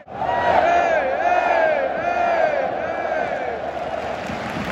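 A huge stadium crowd sings a chant together, loud and close.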